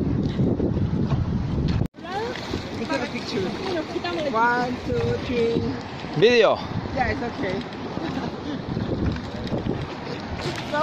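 Water splashes as swimmers move about.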